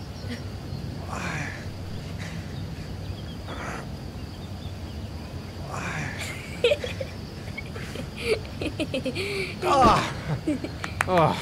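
A man grunts and strains with effort.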